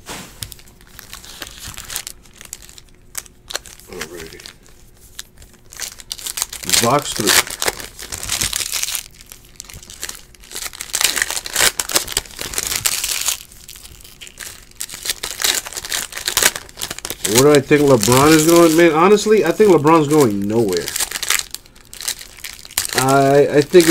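Foil card wrappers crinkle and tear in bursts.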